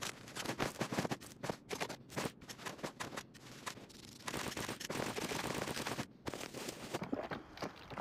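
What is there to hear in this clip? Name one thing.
Gear rustles and clicks as items are handled.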